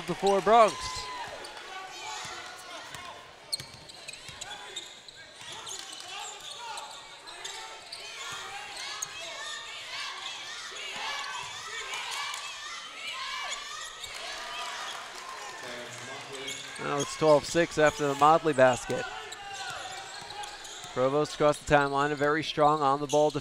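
Sneakers squeak on a hardwood floor.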